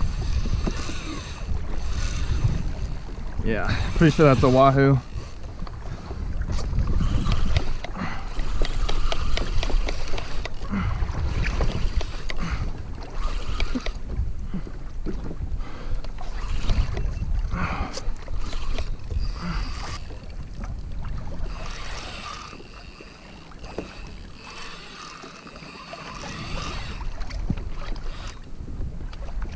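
Water laps against the side of a small boat.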